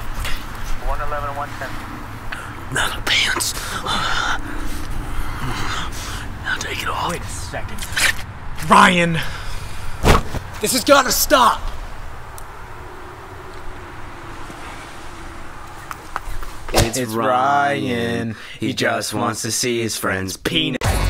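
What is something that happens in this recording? A young man sings with a strained, high voice.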